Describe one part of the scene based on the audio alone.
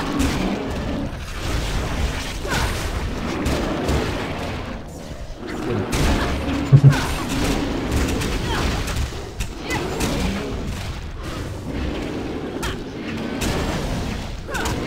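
Weapons strike and clash in a rapid fight.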